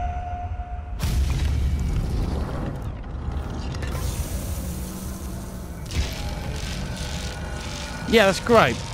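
A heavy stone door grinds open with a deep rumble.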